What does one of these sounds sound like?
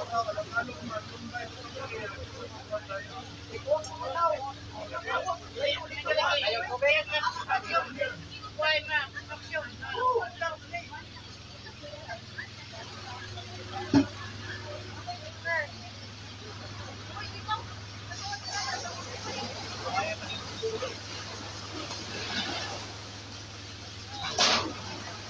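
A crowd of men talks close by.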